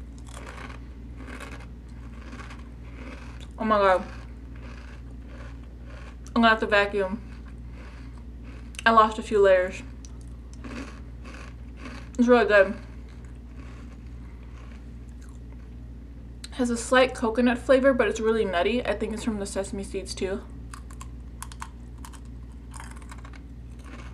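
A young woman chews and crunches a crisp snack.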